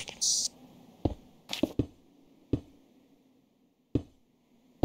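Blocks are placed with short soft thuds in a game.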